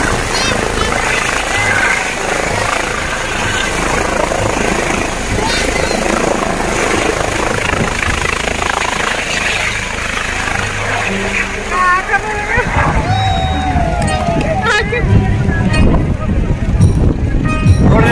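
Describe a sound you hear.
A helicopter's rotor thumps and roars nearby.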